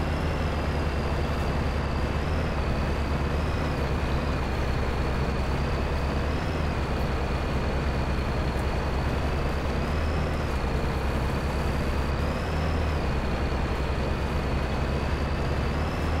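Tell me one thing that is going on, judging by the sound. A truck engine drones steadily as the vehicle drives over rough ground.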